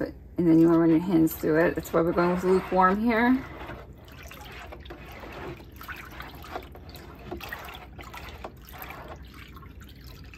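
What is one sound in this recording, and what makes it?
Water sloshes softly as a hand stirs it in a tub.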